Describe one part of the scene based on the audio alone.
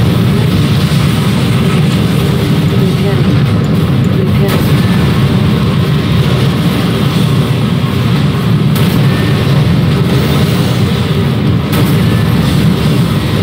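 Explosions boom and crackle in a battle.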